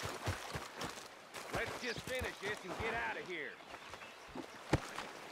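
Boots crunch on loose stones.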